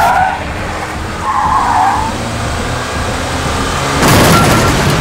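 A car engine roars as the car speeds along a road.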